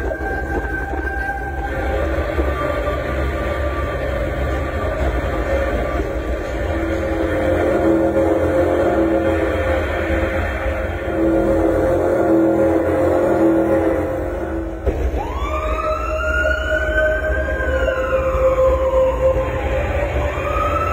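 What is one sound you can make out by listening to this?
Loud music plays through loudspeakers, with a sudden change of tune partway through.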